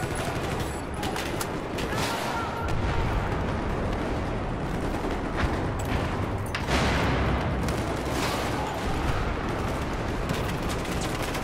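Rifle shots fire in rapid bursts, echoing in a tunnel.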